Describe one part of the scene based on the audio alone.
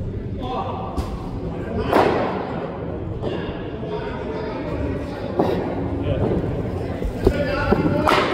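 A cricket ball cracks sharply off a bat.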